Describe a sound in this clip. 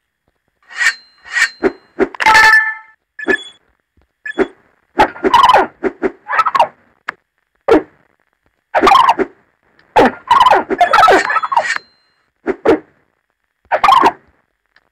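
Short electronic chimes ring out now and then.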